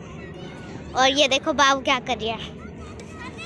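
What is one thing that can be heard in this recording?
A toddler squeals and babbles excitedly close by.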